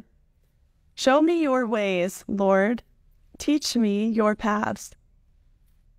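A young woman speaks warmly and clearly, close by.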